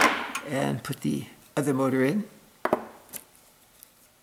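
A small metal part knocks against a wooden tabletop.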